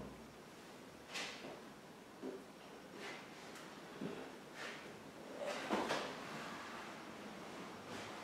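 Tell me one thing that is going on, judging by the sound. Wooden panels knock and creak as they are lifted.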